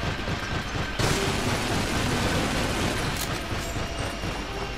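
Two machine guns fire in rapid bursts.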